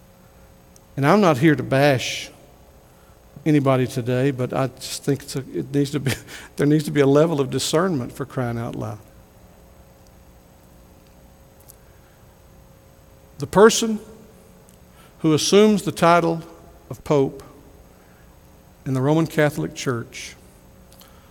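A middle-aged man preaches into a microphone with animation, in bursts with pauses.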